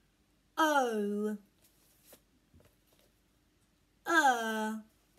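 A young woman says a drawn-out sound clearly and slowly, close by.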